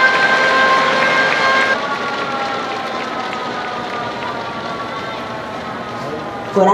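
A large crowd cheers and applauds in an open stadium.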